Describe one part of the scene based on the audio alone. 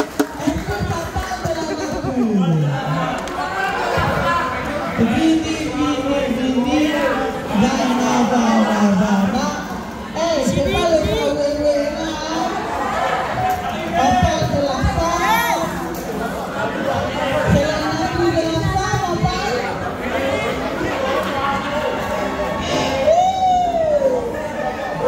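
A woman speaks loudly and with animation to a group.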